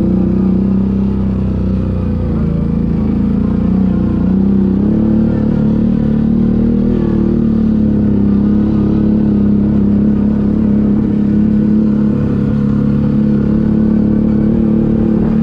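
Tyres crunch over a rough dirt track.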